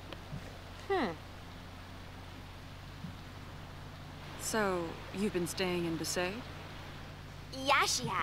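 A young woman speaks calmly.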